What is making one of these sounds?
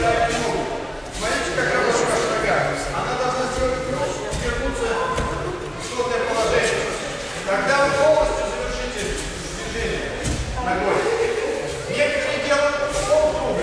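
A crowd of children chatter and call out in a large echoing hall.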